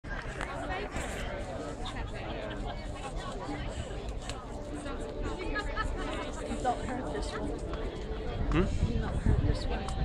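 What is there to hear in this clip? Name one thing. Young children chatter and shout nearby.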